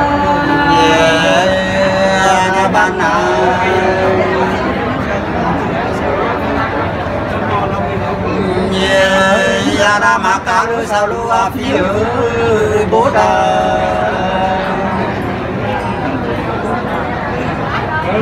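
A middle-aged man sings in a long, wavering voice close by.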